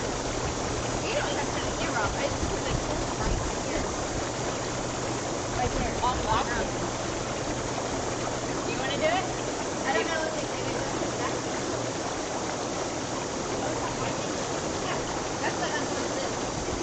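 Young women talk and laugh with animation nearby.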